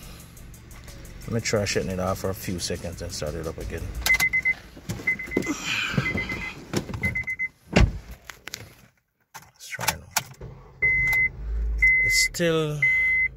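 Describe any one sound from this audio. Keys jingle and click in a car's ignition.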